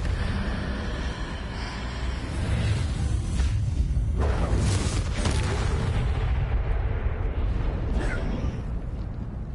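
Magic spells crackle and burst with loud whooshing blasts.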